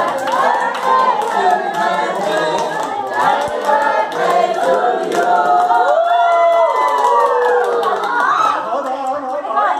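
A crowd claps hands along.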